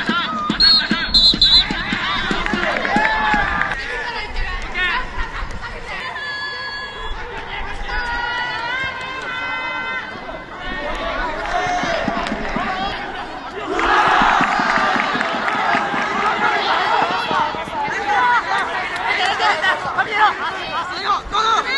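Young men shout to each other across a field.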